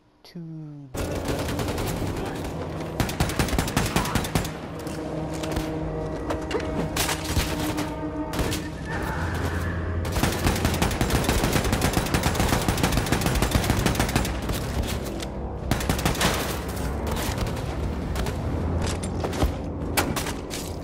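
Loud, driving game music plays.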